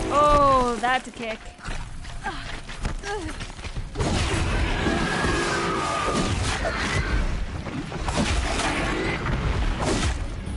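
A mechanical beast lets out a metallic screech.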